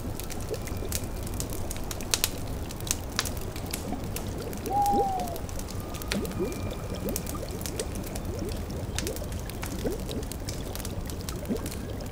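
A cauldron bubbles and gurgles.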